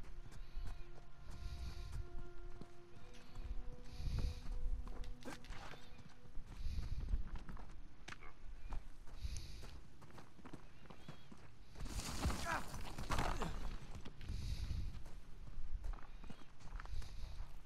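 Footsteps run on stone and gravel.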